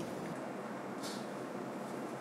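A glass dripper clinks down onto a ceramic cup.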